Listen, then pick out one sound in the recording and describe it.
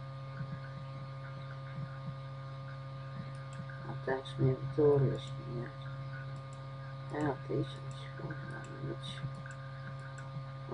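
Music plays softly from a radio.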